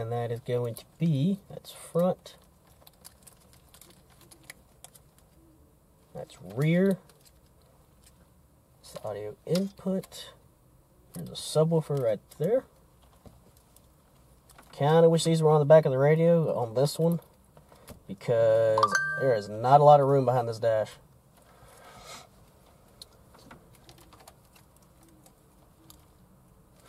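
Plastic wire connectors rustle and click softly as they are handled.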